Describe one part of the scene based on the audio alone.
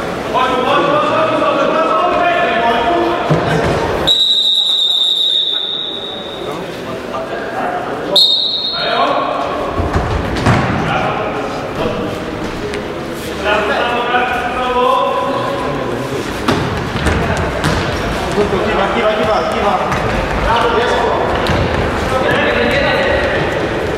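Men shout and call out nearby in a large echoing hall.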